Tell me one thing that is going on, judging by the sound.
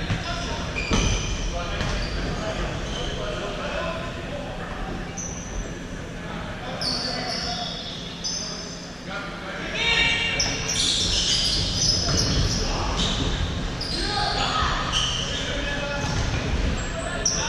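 A ball thumps against the floor and is kicked.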